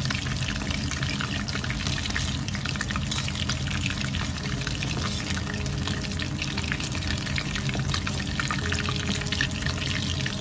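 Metal tongs clink against the side of a wok.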